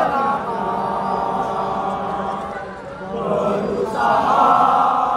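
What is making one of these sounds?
A large crowd sings together loudly in an open stadium, with dips and swells.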